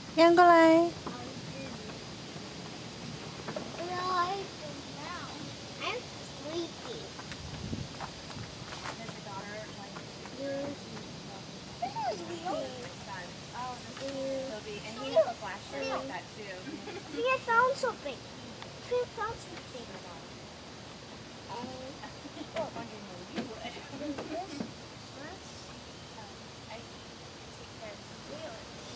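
Young children talk and babble nearby outdoors.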